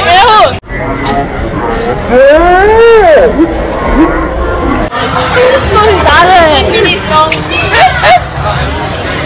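Young girls shout and squeal excitedly close by.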